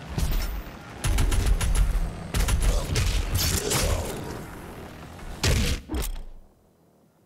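A shotgun fires with loud, booming blasts.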